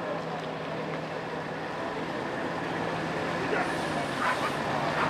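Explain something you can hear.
A diesel coach pulls away from the kerb.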